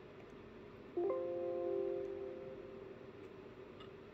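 A computer plays a short alert chime.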